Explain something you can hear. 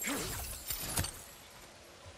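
An axe thuds into rock.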